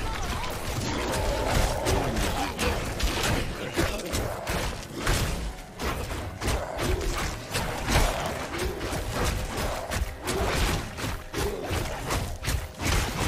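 Blades slash and strike hard in a rapid, ongoing fight.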